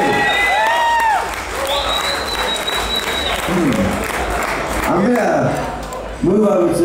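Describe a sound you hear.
A crowd cheers and whistles.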